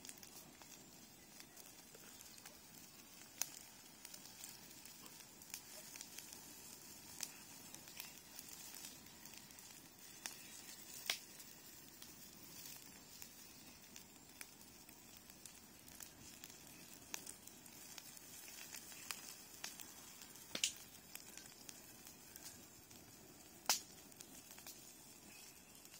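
A fire crackles and pops as it burns dry brush outdoors.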